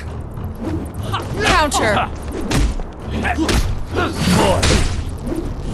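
Blows land with sharp thuds and whooshes in a fight.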